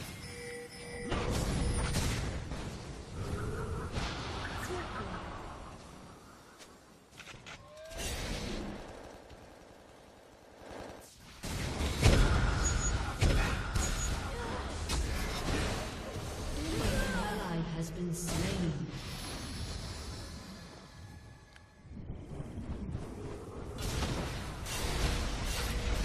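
Video game spell effects whoosh, clash and crackle in bursts.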